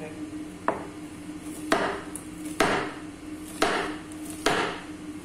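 A knife chops vegetables on a wooden cutting board.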